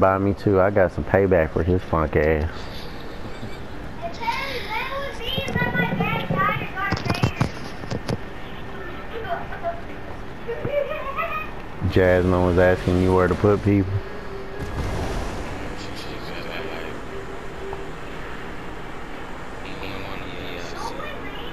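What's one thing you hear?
Wind rushes steadily past during a fast fall through the air.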